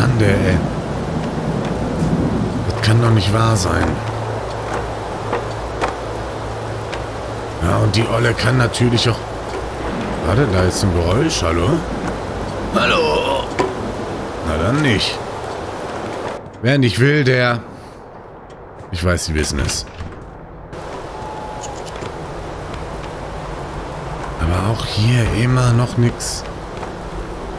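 A man talks close to a microphone, calmly and with pauses.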